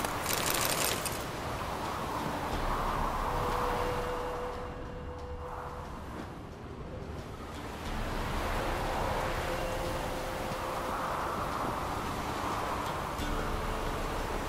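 Waves wash steadily against a boat.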